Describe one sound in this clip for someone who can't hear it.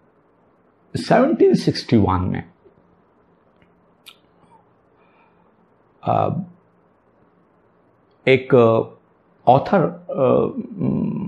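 An older man speaks calmly and close by, with pauses between phrases.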